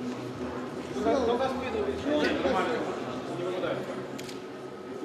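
A man speaks nearby with a raised voice.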